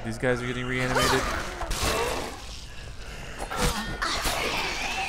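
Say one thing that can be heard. Heavy blows thud and squelch against a body.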